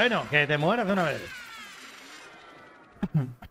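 A bright, sparkling game sound effect rings out and fades away.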